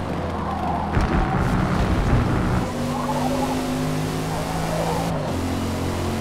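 A car engine hums steadily and shifts pitch as the car accelerates through a bend.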